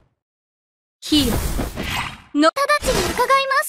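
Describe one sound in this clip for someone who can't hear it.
A magic blast bursts with a sharp whoosh.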